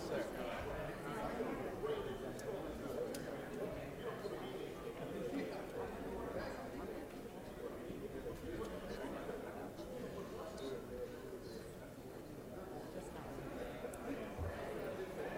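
Many men and women chatter at once in a large echoing hall.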